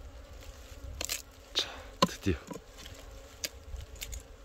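A hand saw rasps into wood in short, uneven strokes.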